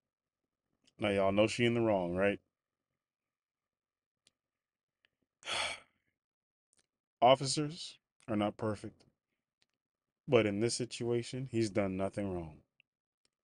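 A young man speaks casually and close to a microphone, in short bursts with pauses.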